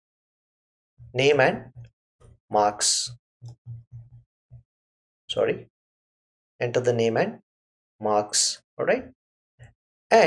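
A middle-aged man speaks calmly and slowly into a close microphone.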